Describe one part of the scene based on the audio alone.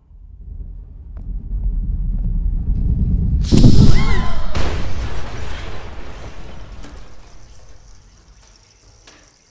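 A toy rocket launches with a loud roaring whoosh that slowly fades.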